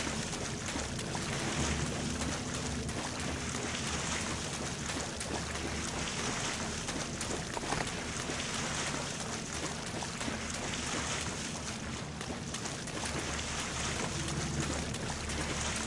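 Feet splash quickly through shallow water.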